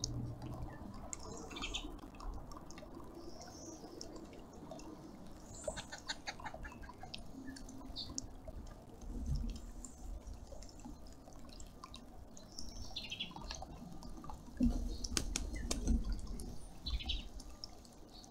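Wings flap as a large bird moves about.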